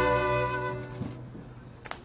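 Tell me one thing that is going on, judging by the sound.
A man plays a long held note on a small wind instrument.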